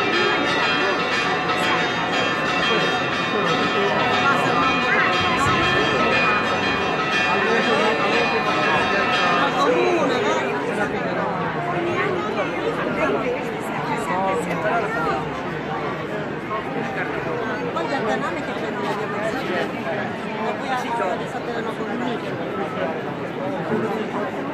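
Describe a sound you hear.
A large crowd chatters and murmurs.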